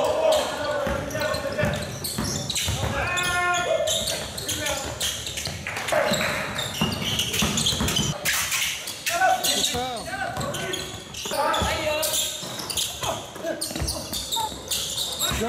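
A basketball bounces on a hardwood floor, echoing in a large hall.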